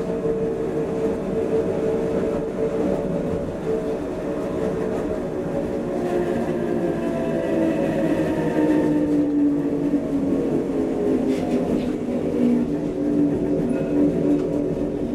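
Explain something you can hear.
A train rumbles and hums steadily along the tracks, heard from inside the carriage.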